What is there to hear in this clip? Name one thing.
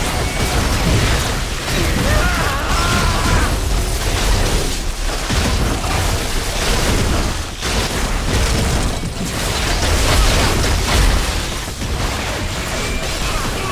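Laser beams hum and zap.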